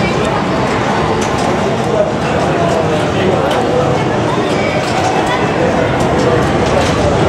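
A crowd of children and adults chatter loudly in an echoing hall.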